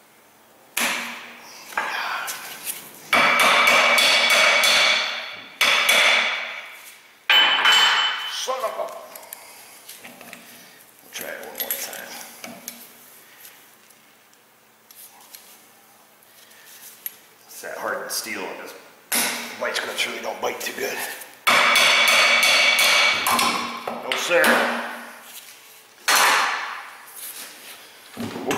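A hammer strikes metal with sharp, ringing blows.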